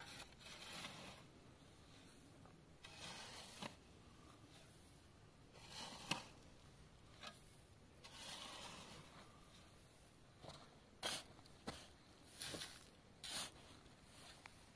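A shovel scrapes and digs into gravelly soil, again and again.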